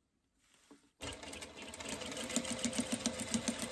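An electric sewing machine stitches through fabric.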